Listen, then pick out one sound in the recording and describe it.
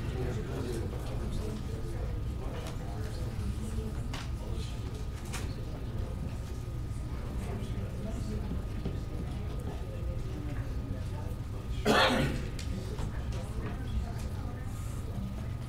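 A man speaks quietly into a microphone in a large room.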